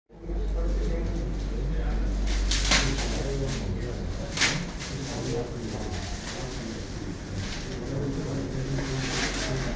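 Paper crinkles and rustles as a wrapped package is opened by hand.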